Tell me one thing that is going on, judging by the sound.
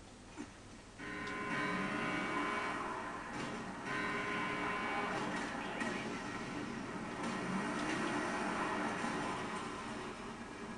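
A heavy truck engine roars as it approaches.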